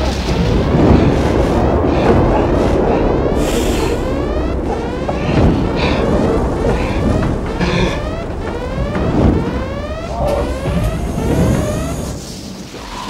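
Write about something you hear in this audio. Flames roar loudly.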